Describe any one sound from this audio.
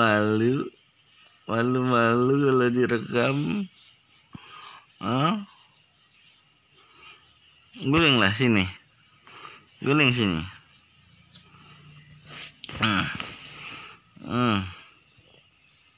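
A baby coos and babbles loudly close by.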